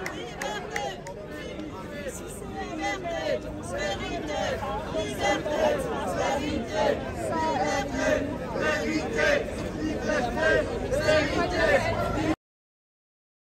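A crowd of men and women talks at once close by, outdoors.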